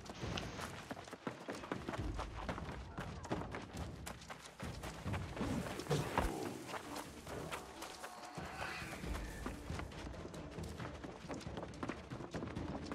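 Footsteps thud quickly across wooden boards and grass.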